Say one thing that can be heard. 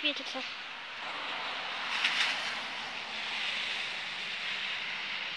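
A car drives past on a wet road, its tyres hissing.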